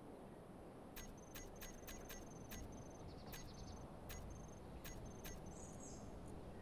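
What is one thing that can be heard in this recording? Soft clicks tick quickly as a menu is browsed.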